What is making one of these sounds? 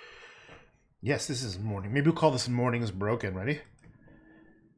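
A middle-aged man speaks calmly into a microphone nearby.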